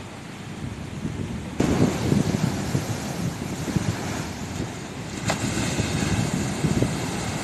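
Heavy waves crash and roar against a seawall, outdoors in wind.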